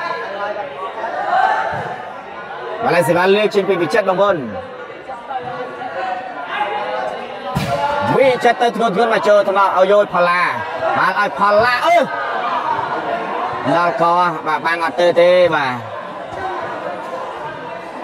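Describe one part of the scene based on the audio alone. A crowd of spectators chatters and murmurs in a large echoing hall.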